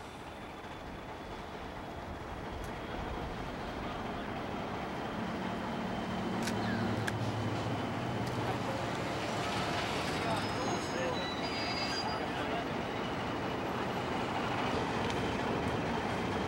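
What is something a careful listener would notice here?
An Alco diesel locomotive rumbles as it hauls a passenger train.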